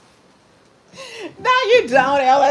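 A middle-aged woman laughs loudly close to a microphone.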